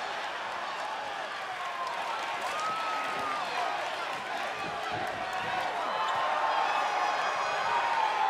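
A large crowd cheers and whistles in a big echoing arena.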